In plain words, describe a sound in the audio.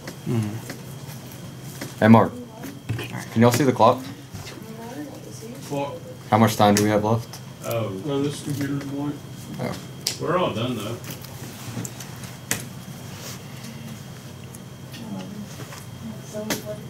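Playing cards shuffle and slap softly onto a table.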